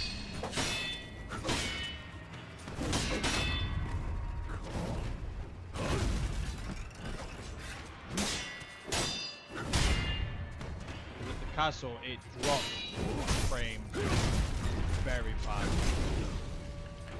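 Swords clash and ring sharply, again and again.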